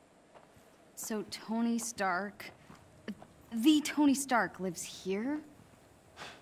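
A young woman asks a question in a surprised voice.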